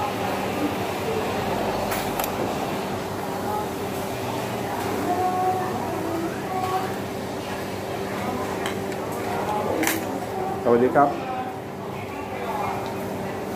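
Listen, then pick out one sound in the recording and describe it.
A man chews food noisily close by.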